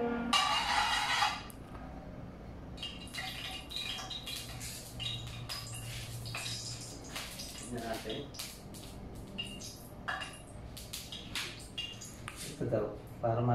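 Metal utensils clink and clatter against pans.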